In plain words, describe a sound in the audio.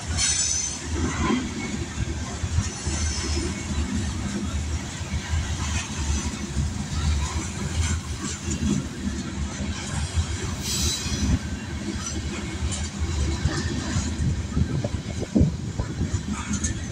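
Steel train wheels clatter over rail joints.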